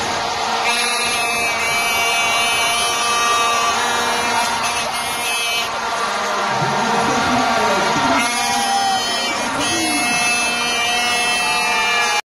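A group of men sing and cheer loudly together.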